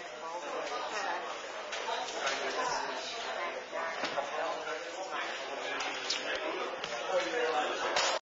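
A man speaks into a microphone in a hall.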